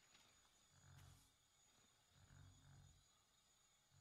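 A card lands on a game board with a soft digital chime.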